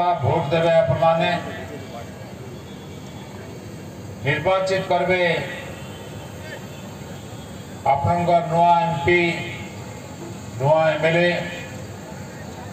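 An elderly man speaks calmly into a microphone over loudspeakers, in short phrases with pauses.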